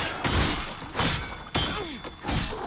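A fiery blast bursts with a roar.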